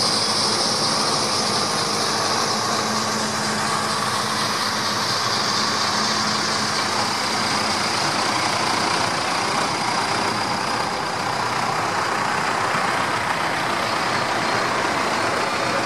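Large tyres roll over a wet concrete track.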